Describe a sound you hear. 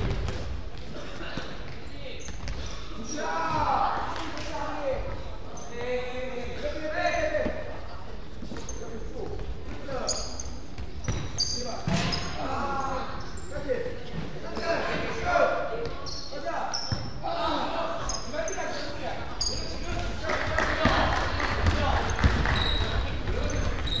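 A basketball bounces on a hard floor with an echo.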